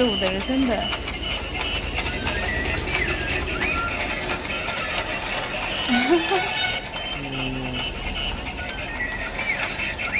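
A toy plays a tinny electronic tune.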